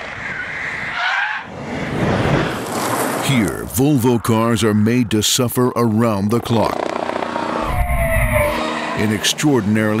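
A car engine revs hard as the car speeds past.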